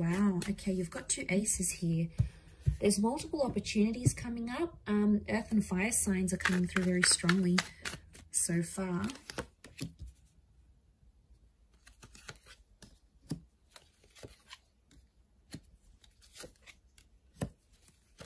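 Cards slide and tap softly onto a table.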